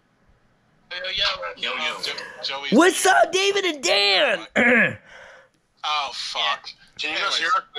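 A man talks with animation through a phone speaker on a video call.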